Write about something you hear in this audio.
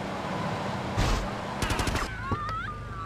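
Metal bangs as a car crashes into another car.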